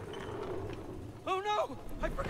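A man exclaims in dismay.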